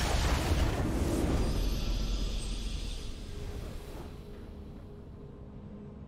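A triumphant game fanfare swells and slowly fades.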